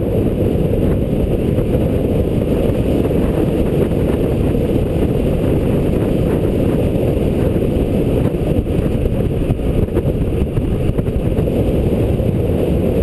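Wind roars and buffets as a bicycle speeds downhill.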